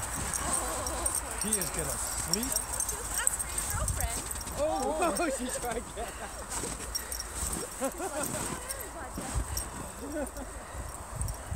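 Adults talk outdoors with animation at a short distance.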